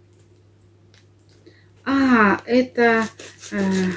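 Scissors snip through a plastic packet.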